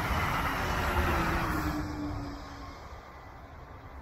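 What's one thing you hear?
A train rumbles along a track in the distance.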